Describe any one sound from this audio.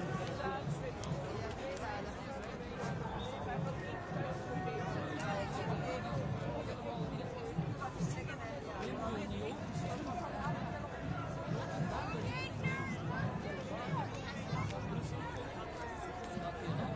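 A large crowd of men and women chatters and calls out outdoors.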